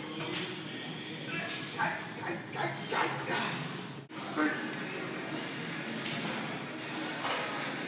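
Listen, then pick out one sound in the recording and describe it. A barbell clanks as it is racked and lifted.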